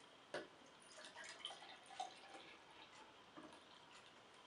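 Soda pours into a glass and fizzes.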